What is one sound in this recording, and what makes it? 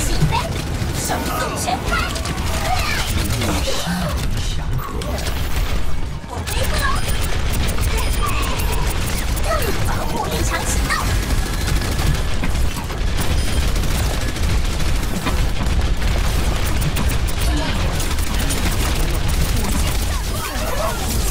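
Rapid gunfire rattles continuously.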